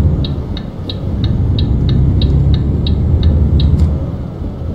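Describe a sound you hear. A turn signal ticks rapidly and then stops.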